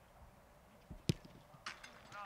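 A football is struck hard with a single thump.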